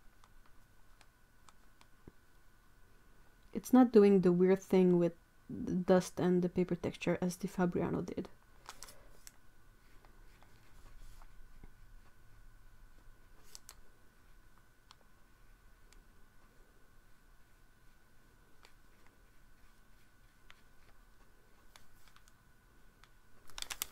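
A brush dabs and strokes softly on paper.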